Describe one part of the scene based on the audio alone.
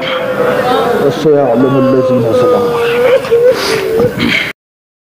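A man sings with feeling into a microphone, holding long wavering notes.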